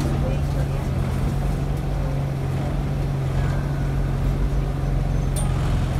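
A bus engine hums steadily with a low drone.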